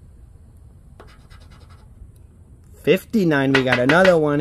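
A coin scratches across a paper ticket.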